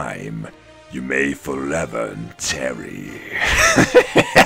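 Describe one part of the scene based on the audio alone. A man speaks in a sly, theatrical voice.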